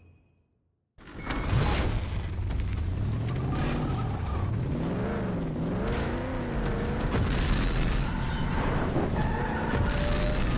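A car engine roars and revs as the vehicle drives over rough ground.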